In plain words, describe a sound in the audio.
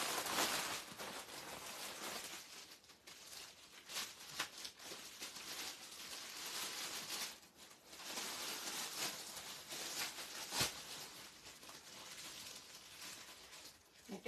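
Fabric rustles as it is unfolded.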